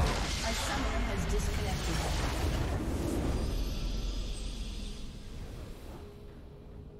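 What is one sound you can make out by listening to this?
A building explodes with a deep rumbling blast.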